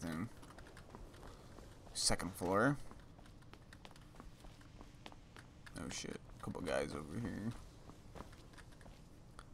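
Footsteps tread on stone steps.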